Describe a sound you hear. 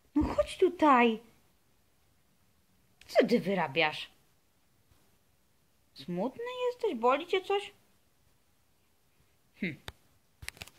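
A small dog whines and howls close by in short, rising and falling bursts.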